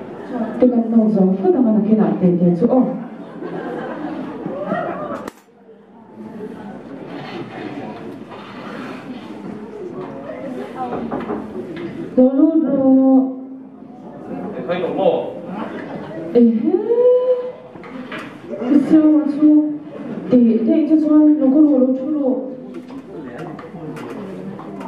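A woman speaks into a microphone over a loudspeaker in a large echoing hall.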